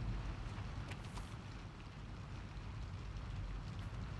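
A sheet of paper rustles.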